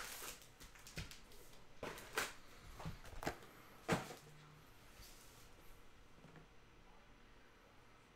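Foil card packs crinkle and tap as hands shuffle them.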